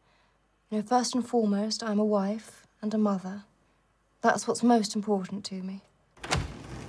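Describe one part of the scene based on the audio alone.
A young woman speaks softly into a microphone.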